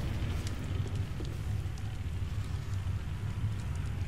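A fire crackles and roars steadily.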